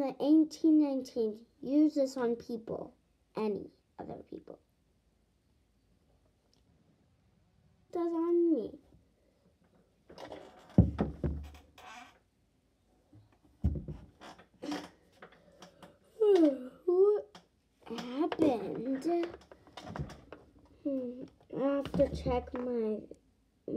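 A young girl talks close by, in an animated voice.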